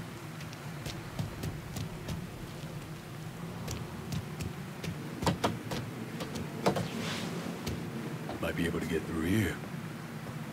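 Footsteps walk on hard ground.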